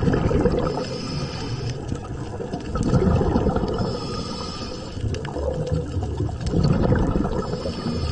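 Water rushes and murmurs all around underwater, swelling in low surges.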